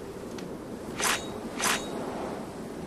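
A magic charge flares up with two sharp hissing bursts.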